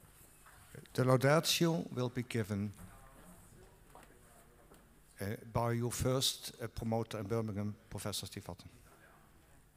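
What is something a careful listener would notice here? A man speaks formally into a microphone in an echoing hall.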